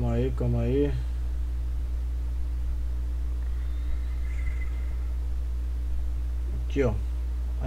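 A man speaks briefly into a headset microphone.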